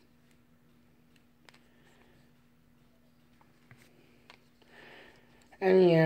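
Small batteries click softly against each other.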